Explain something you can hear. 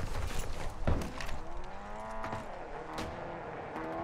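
A sniper rifle fires a sharp shot.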